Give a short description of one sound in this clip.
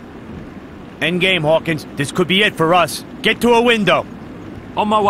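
A man speaks urgently.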